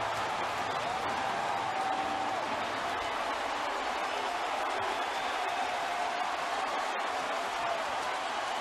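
Men shout and cheer excitedly up close.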